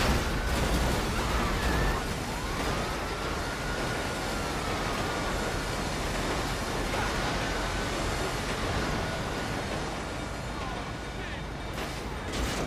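A freight train rumbles past on the tracks.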